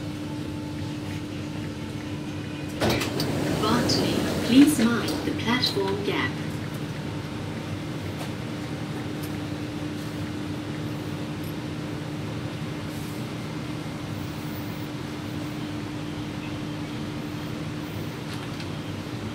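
A train hums steadily while riding.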